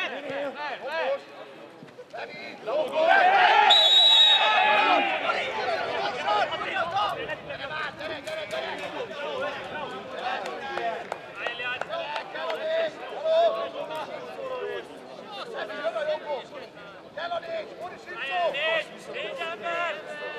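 Men shout and argue at a distance outdoors.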